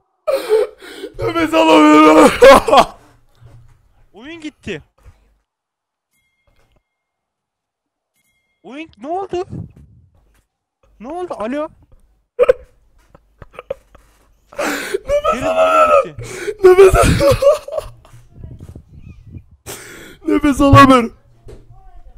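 A man laughs loudly over a microphone.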